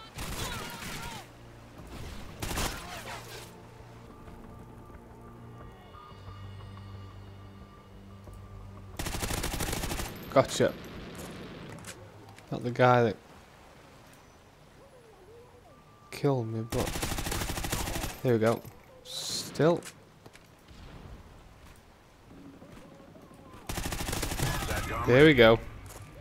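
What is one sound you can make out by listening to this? Automatic gunfire rattles in short, loud bursts.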